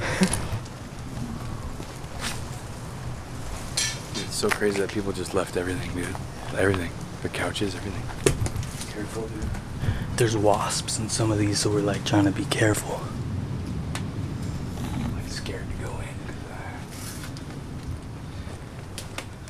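Footsteps crunch on debris underfoot.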